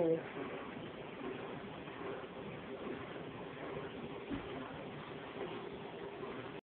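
Water from an aquarium filter bubbles and trickles steadily.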